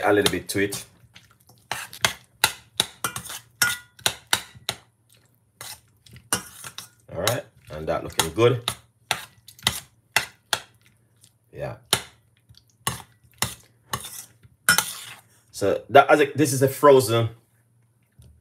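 A metal spoon scrapes and clinks against a small metal pot while stirring.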